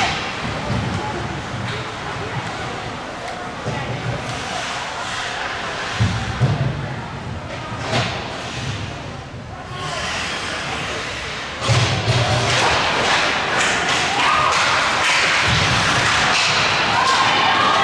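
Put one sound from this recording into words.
Skates scrape and hiss across the ice.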